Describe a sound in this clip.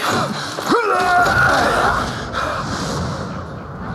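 A deep rumbling explosion booms.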